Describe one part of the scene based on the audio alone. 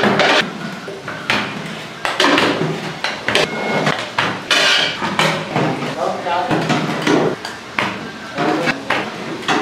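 Metal trays clatter and scrape as they slide into a steamer.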